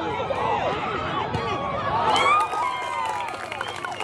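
A soccer ball thuds as a player kicks it toward the goal.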